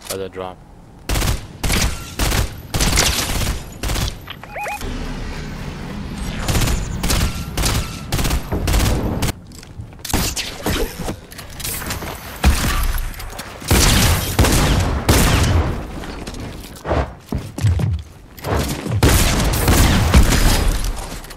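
Gunshots from a game crack in rapid bursts.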